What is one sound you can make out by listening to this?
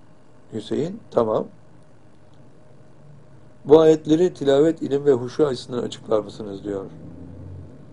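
An elderly man speaks calmly and slowly close to a microphone.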